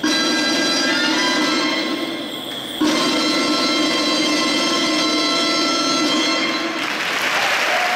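A live folk band plays a lively tune in a large echoing hall.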